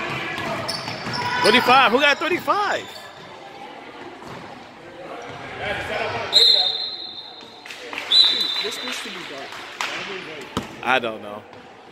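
Sneakers squeak on a gym floor.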